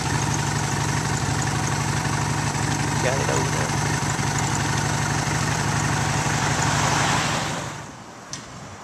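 A vehicle engine hums loudly nearby, then fades away.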